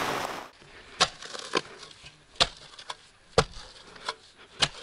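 A tool knocks and scrapes against hard ground in sharp strikes.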